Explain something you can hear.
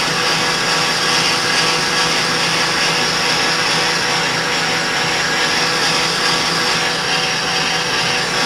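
A cutting tool scrapes against spinning metal with a steady hiss.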